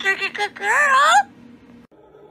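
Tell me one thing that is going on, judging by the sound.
A parrot squawks loudly up close.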